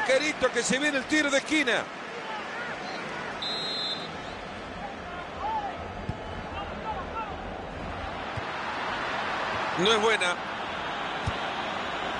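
A large stadium crowd murmurs and cheers steadily, swelling toward the end.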